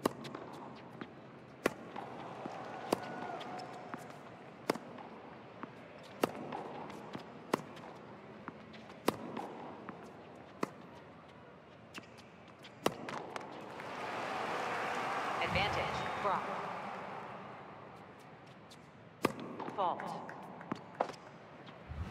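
Tennis rackets hit a ball back and forth with sharp pops.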